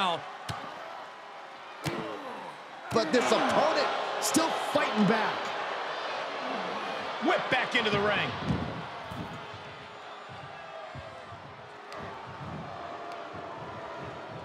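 A large crowd cheers and roars in an arena.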